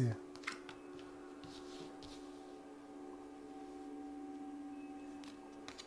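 Playing cards slide and tap softly on a table.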